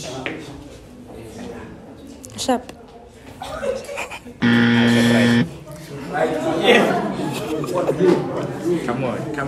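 Young men and a young woman talk and laugh nearby.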